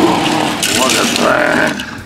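Small metal toy cars clink and clatter together.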